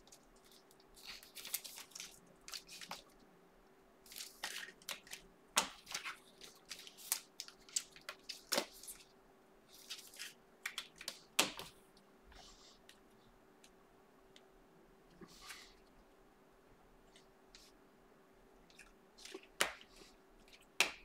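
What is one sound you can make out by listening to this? Cards and a plastic wrapper rustle and crinkle close by in quick bursts.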